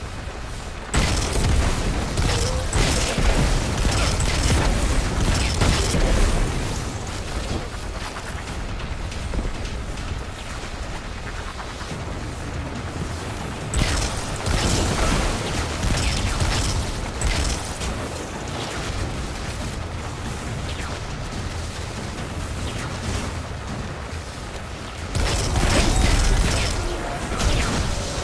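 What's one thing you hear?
Guns fire in loud, rapid bursts.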